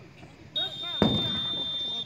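A firecracker bangs loudly outdoors.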